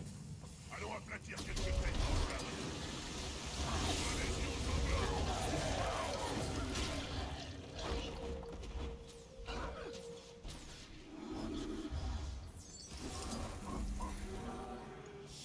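Weapons clash and magic bursts in a video game fight.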